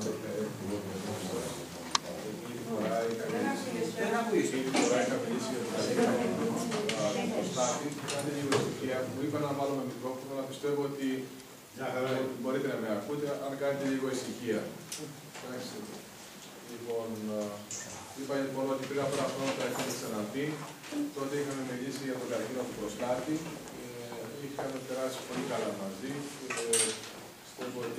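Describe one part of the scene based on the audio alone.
A middle-aged man speaks calmly to an audience through a microphone in a large room.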